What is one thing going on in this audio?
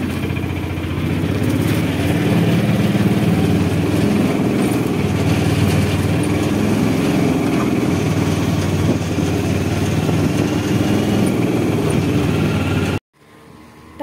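Tyres roll on the road as the rickshaw rides along.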